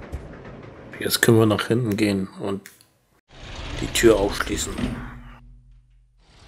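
A heavy door creaks open slowly.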